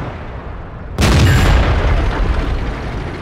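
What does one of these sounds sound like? A tank cannon fires with a loud, booming blast.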